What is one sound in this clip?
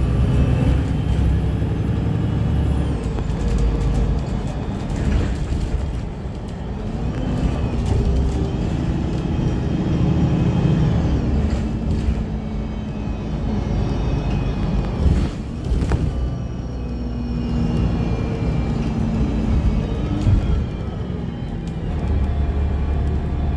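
A vehicle's engine hums steadily from inside as it drives along a road.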